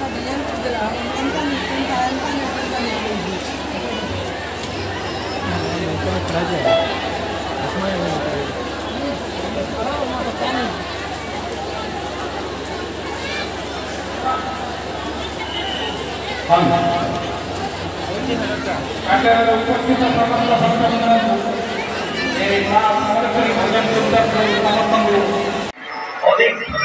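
A large outdoor crowd chatters and shouts in a loud, busy hubbub.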